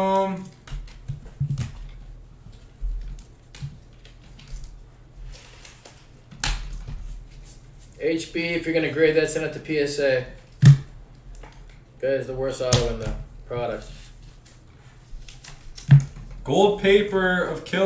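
Trading cards flick and rustle as they are shuffled through by hand.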